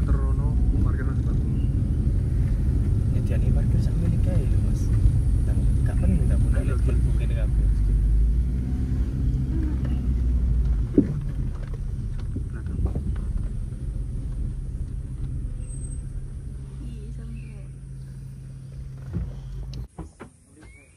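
A car engine rumbles steadily from inside the car and then cuts off.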